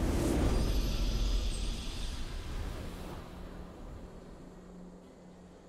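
A deep, booming video game victory sound rings out and slowly fades.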